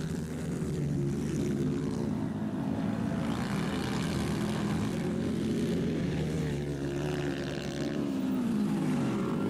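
A motocross bike engine revs loudly and whines up and down as it races past.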